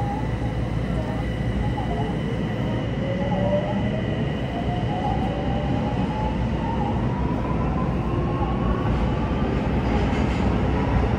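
A train's electric motor whines, slowly rising in pitch.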